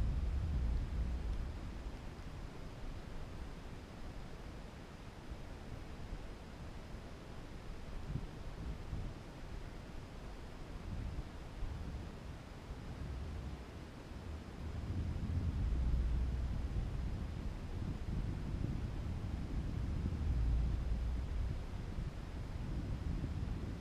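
Wind rumbles and buffets in uneven gusts.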